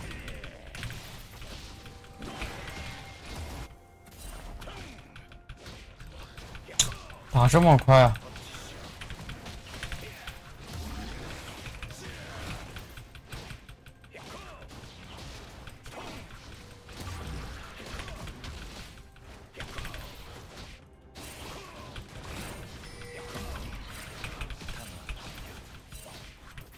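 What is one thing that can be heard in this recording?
Game combat effects whoosh and clash.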